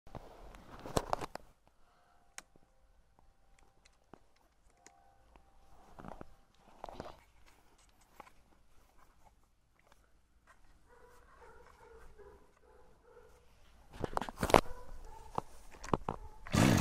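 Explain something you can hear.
A hand knocks and rattles the plastic body of a string trimmer.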